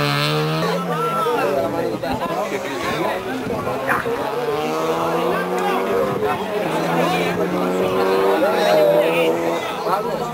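Men in a crowd outdoors talk and shout loudly.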